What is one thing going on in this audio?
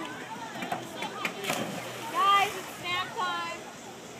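Water splashes as a boy jumps into a pool.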